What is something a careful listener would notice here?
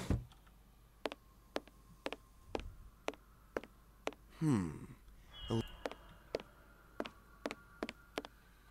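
Footsteps tread steadily.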